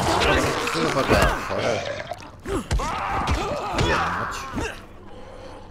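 A zombie snarls and growls up close.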